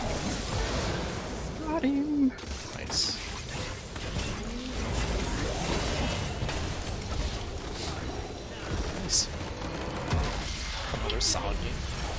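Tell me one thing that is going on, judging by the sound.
Game battle effects clash and blast rapidly.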